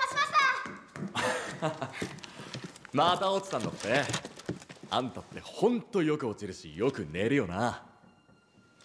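A young man speaks mockingly and laughs.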